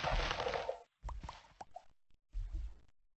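A game character munches food.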